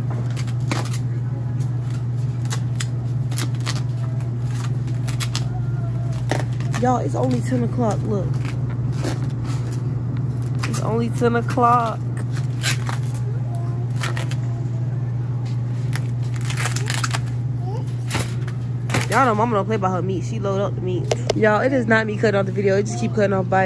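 Plastic food packages crinkle and rustle as they are handled.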